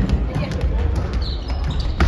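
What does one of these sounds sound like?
A ball bounces on a wooden floor.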